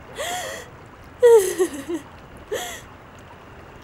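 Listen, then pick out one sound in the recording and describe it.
A young woman cries out and sobs in distress, close by.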